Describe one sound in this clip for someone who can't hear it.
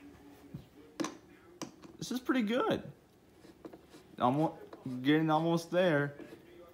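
A screwdriver scrapes and clicks as it turns a screw into wood.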